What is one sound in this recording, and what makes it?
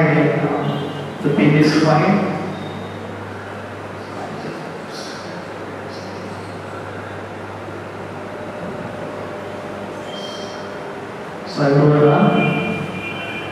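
A man speaks calmly to an audience.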